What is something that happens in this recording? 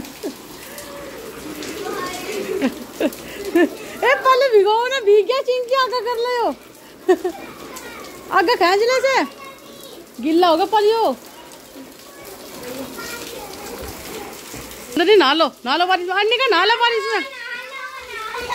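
Rain patters steadily on wet ground.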